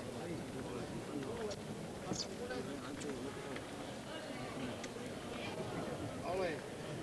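Guitars strum along with the singing.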